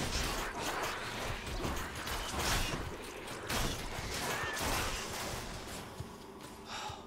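Video game combat effects crash and clash rapidly.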